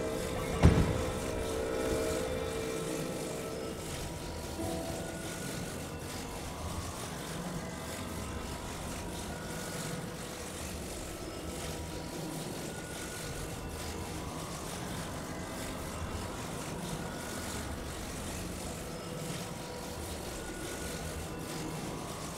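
Wind rushes steadily.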